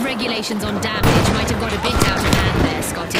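An explosion booms and debris scatters.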